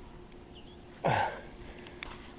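A fish splashes at the surface of calm water.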